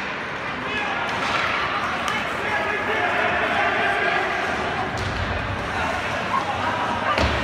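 A crowd chatters in a large echoing rink.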